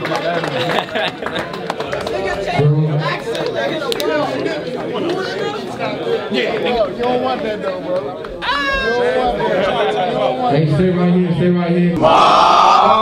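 A crowd of young men talks and shouts loudly close by.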